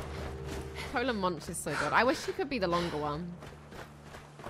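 A young woman speaks with animation, close to a microphone.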